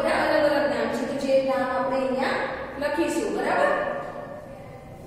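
A young woman speaks with animation close by, in a slightly echoing room.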